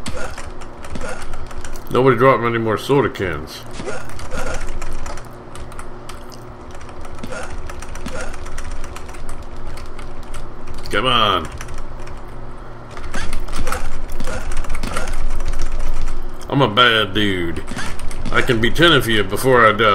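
Arcade game music plays steadily.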